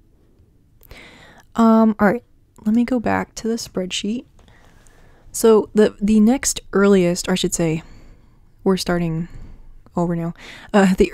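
A woman speaks calmly and close to a microphone, with pauses.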